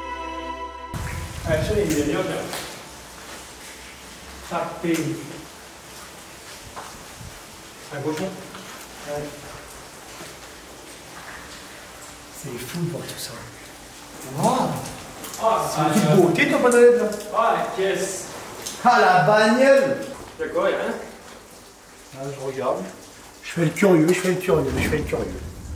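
A young man speaks calmly and closely.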